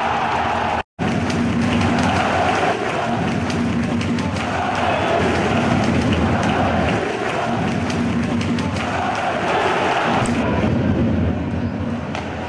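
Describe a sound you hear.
A crowd chants and sings in rhythm.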